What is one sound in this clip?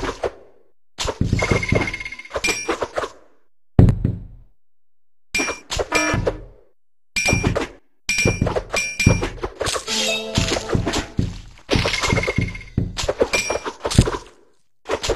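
Game coins chime with bright jingles.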